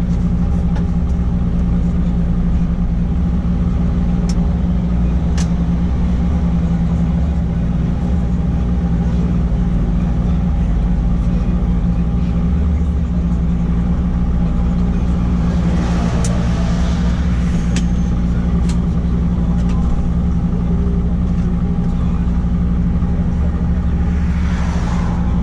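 Tyres roll with a steady road rumble.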